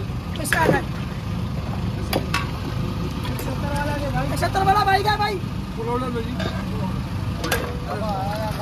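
A metal cup scrapes and clinks against ice.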